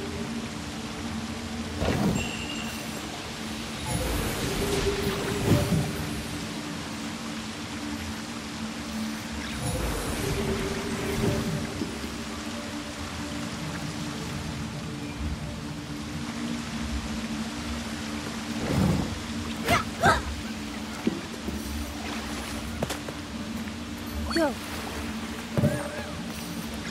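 Waterfalls rush steadily.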